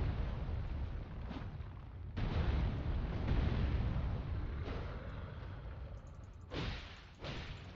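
A huge creature stomps heavily on the ground.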